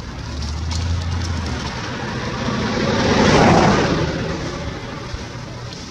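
Leaves rustle as monkeys shift on a branch.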